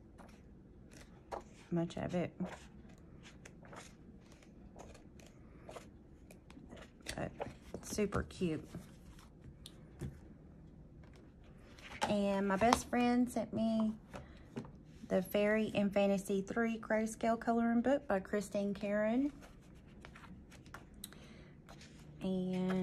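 Paper pages rustle and flip as a book is leafed through.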